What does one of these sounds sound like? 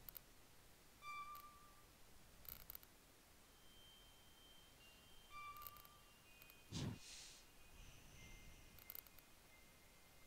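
Short electronic menu beeps chime now and then.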